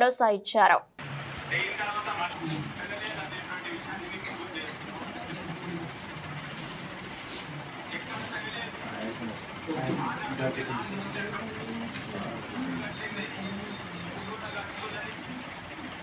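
Several men talk quietly in the background.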